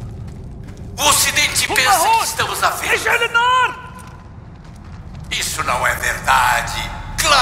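A man talks calmly into a nearby microphone.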